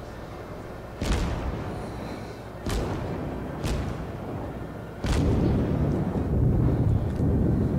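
Naval guns fire in loud, booming blasts.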